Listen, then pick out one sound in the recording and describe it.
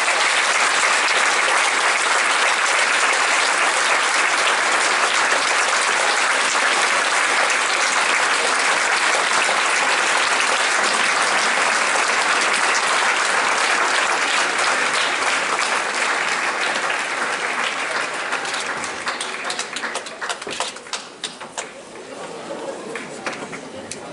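A large audience claps and cheers loudly in a big hall, then the applause thins out and fades.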